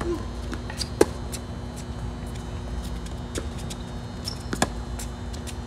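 A tennis ball is struck with a racket with sharp pops.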